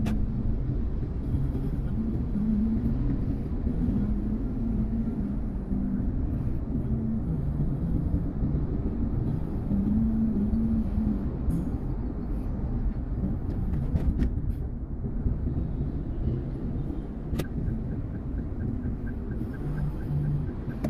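A car engine hums steadily with tyres rumbling on the road, heard from inside the car.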